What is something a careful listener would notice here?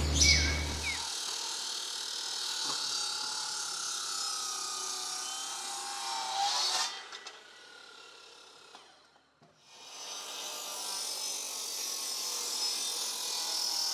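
A power chain saw whines steadily as it cuts into wood.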